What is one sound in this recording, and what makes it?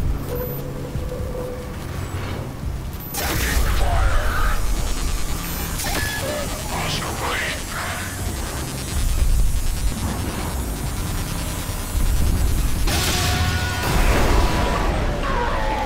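A radio device crackles with static.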